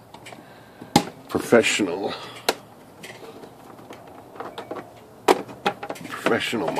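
Plastic parts of a printer click and knock as a hand handles them.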